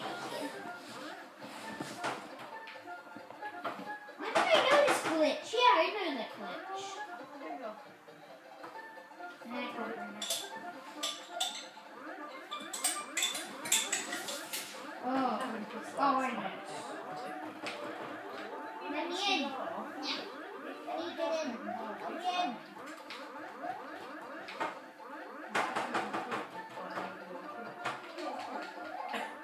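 Cheerful electronic game music plays from a television speaker.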